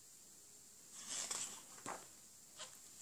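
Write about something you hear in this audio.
A paper page rustles as it is turned.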